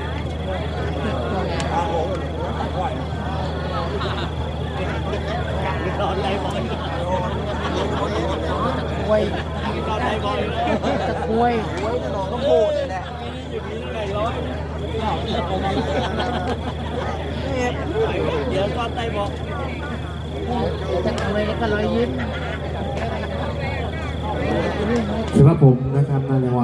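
A crowd of young women chatters all around outdoors.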